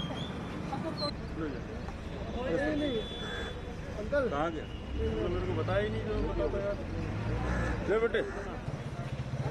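Men talk nearby in raised voices.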